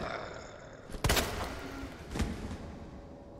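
A gun fires a couple of loud shots.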